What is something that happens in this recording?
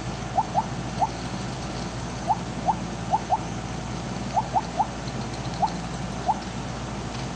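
Short rising electronic blips chime as a game snake gobbles up pellets.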